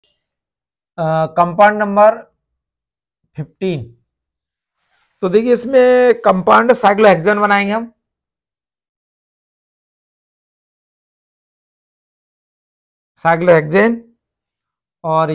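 A man speaks calmly and clearly, close by, in short phrases with pauses.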